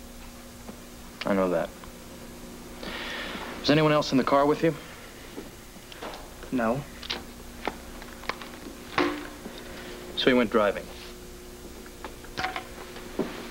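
A second young man answers softly, close by.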